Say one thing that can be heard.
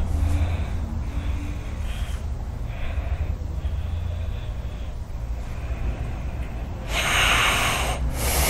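A man snores loudly close by.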